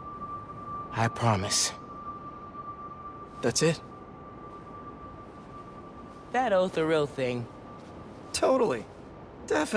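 A young man speaks calmly and closely.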